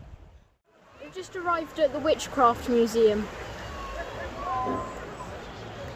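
A young boy talks calmly close by.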